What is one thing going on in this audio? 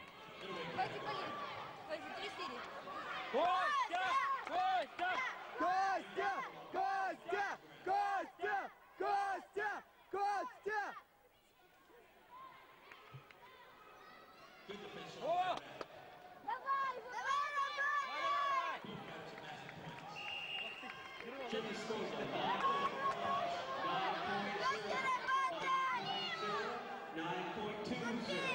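A crowd shouts and cheers in a large echoing arena.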